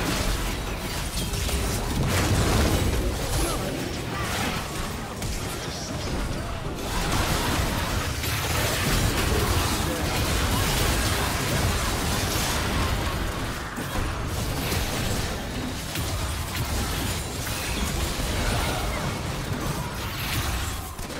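Game spells and attacks crackle and boom in a busy fight.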